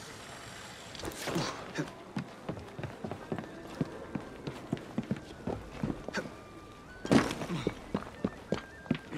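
Footsteps thud quickly across wooden boards and roof tiles.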